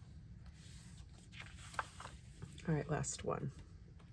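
Paper slides and rustles on a table.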